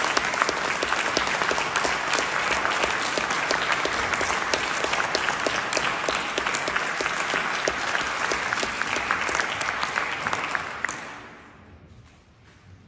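An audience applauds loudly in a large hall, then the clapping fades.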